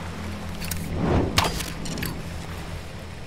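A burning arrow strikes and bursts into crackling flame.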